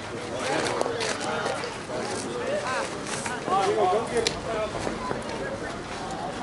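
Several men talk and call out to each other outdoors, fairly close.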